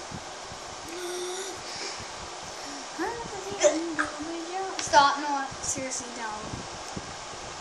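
Young children talk and laugh excitedly close by.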